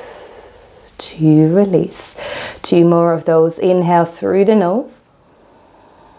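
A young woman speaks calmly and softly close to a microphone.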